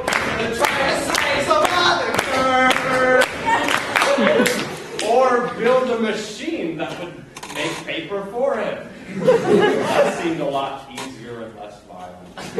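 Young men sing and chant loudly together in a large hall.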